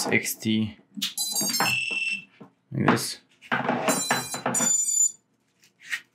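A small drone beeps in quick rising tones.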